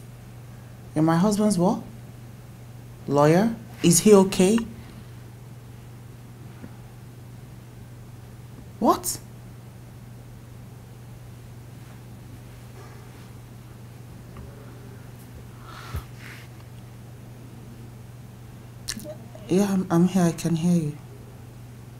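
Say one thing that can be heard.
A young woman speaks close by, upset and pleading.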